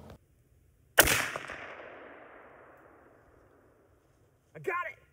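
A rifle fires with a sharp crack close by, and the boom rolls away and fades.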